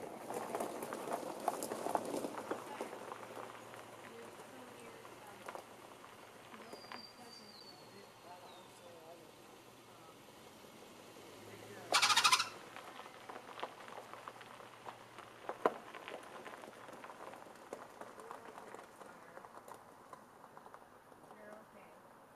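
Tyres crunch slowly over gravel.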